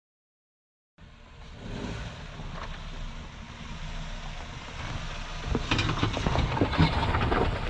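An engine revs hard as a vehicle climbs a steep bank.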